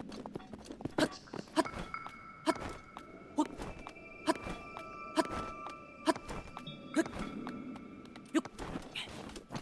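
A game character climbs a rock face with regular scuffing steps.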